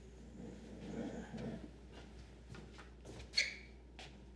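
Footsteps walk away across a room.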